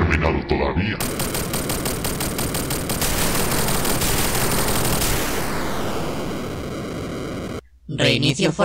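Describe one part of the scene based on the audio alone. Flames roar loudly.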